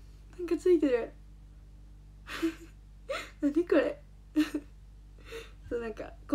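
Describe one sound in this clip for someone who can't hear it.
A young girl speaks excitedly and giggles close to a microphone.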